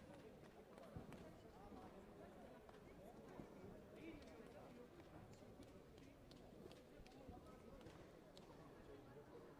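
Many voices murmur and echo in a large hall.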